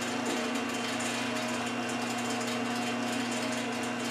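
A cutter whirs as it mills into metal.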